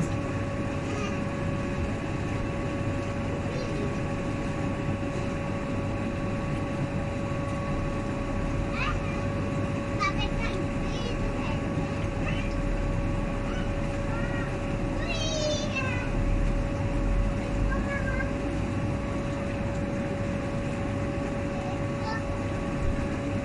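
A light wind blows outdoors.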